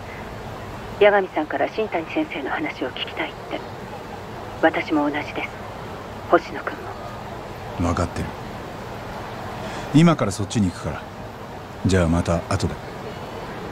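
A young man talks calmly on a phone.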